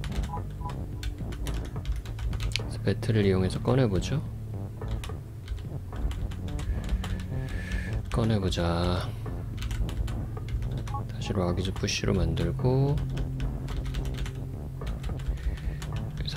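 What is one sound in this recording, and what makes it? Short electronic blips sound as game pieces move.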